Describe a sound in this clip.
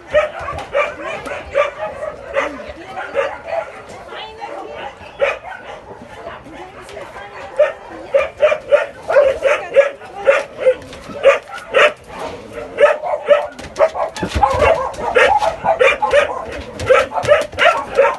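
A dog barks repeatedly and excitedly close by.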